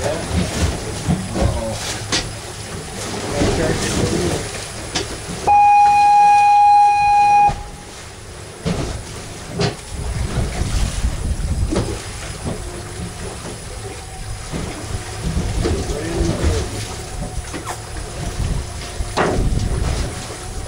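Waves slosh against the side of a boat.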